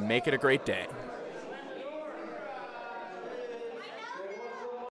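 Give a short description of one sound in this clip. A crowd of adults murmurs and chatters in a room.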